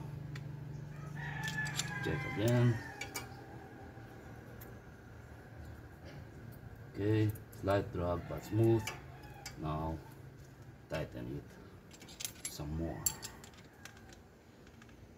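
Metal tools click and scrape against engine parts.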